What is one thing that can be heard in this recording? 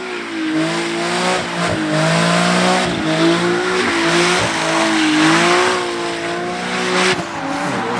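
A car engine revs hard and roars.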